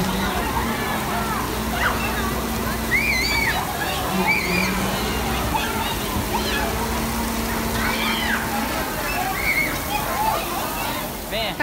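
Water sprays down steadily in a heavy hissing shower.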